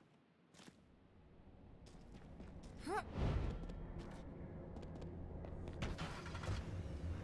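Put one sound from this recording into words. A car engine starts up and rumbles.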